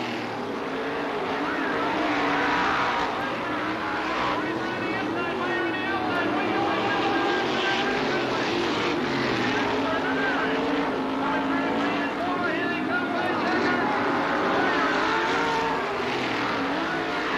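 Racing car engines roar loudly, rising and falling in pitch as they rev.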